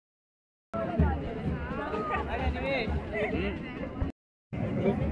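A crowd of men and women chatters close by, outdoors.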